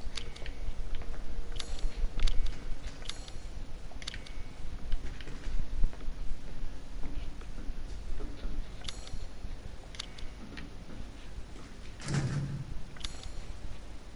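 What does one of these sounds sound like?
Sharp menu clicks sound now and then.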